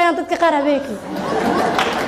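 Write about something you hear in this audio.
A woman speaks cheerfully through a microphone.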